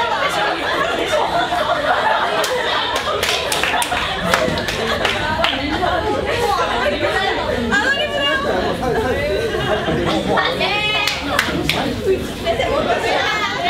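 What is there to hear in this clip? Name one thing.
A crowd of young men and women chatters and laughs.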